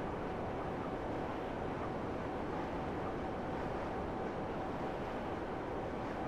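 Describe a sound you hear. A rocket thruster roars steadily.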